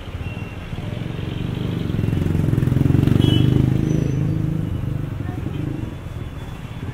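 A vehicle engine rumbles past, growing louder then fading.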